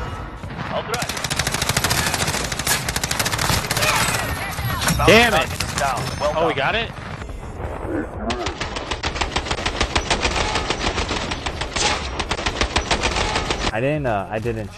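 Gunshots crack rapidly in quick bursts.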